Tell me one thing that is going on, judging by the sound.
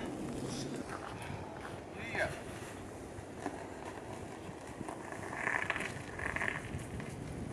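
A bicycle rides over snowy forest ground.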